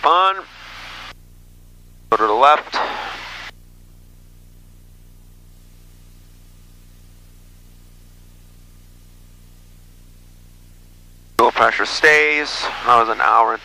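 An aircraft engine drones steadily.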